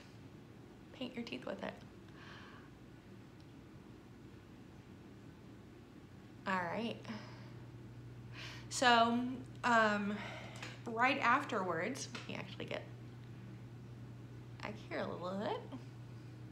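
A woman speaks close to a microphone with animation.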